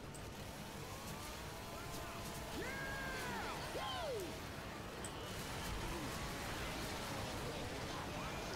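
A blade swings and slashes into flesh.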